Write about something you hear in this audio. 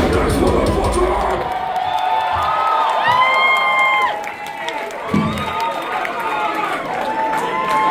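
A band plays loud live music in a large echoing hall.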